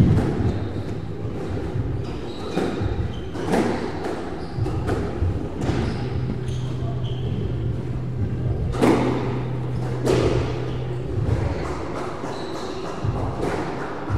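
A squash ball smacks off rackets and walls, echoing in a hard-walled court.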